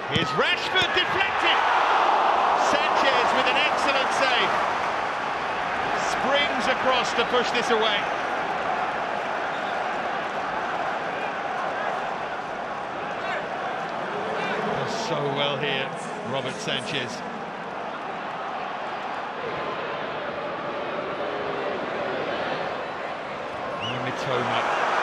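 A large stadium crowd roars and cheers throughout.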